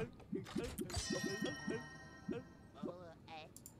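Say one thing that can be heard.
A chest opens with a bright shimmering chime.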